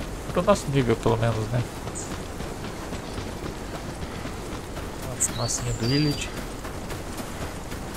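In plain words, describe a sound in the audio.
Footsteps swish through tall dry grass.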